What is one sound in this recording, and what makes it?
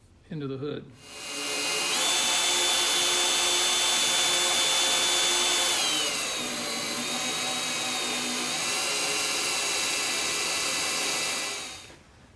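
An electric drill whirs steadily as it bores into metal.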